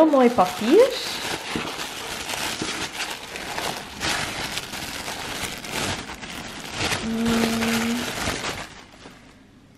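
Tissue paper crinkles and rustles between fingers.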